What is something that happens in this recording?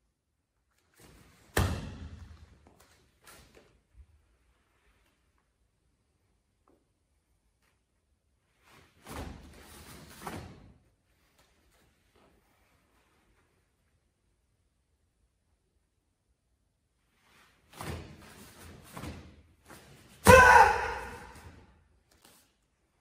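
Bare feet thump and stamp on a mat.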